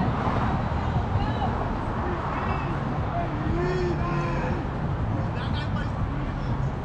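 Players call out to each other across an open field, distant.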